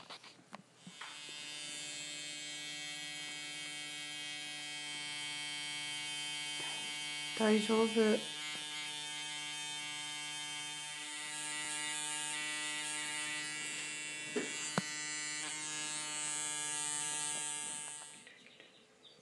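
A small tattoo machine buzzes steadily close by.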